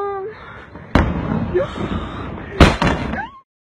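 Loud explosions boom in the distance.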